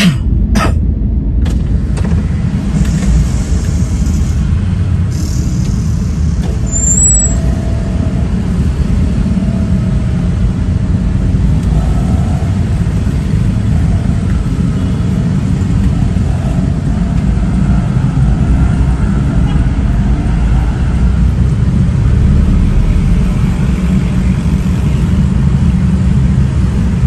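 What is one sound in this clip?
Motorcycle engines hum in slow traffic nearby.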